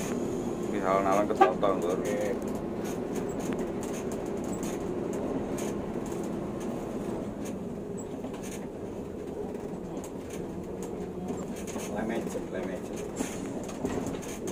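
A bus engine rumbles steadily from inside the bus as it turns slowly.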